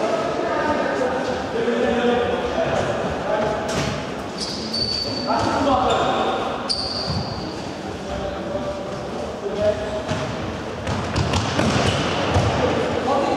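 Young men shout to each other across a large echoing hall.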